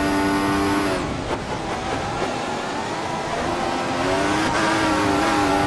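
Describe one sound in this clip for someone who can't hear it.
A racing car engine drops to a lower, rougher sound while braking, then climbs again.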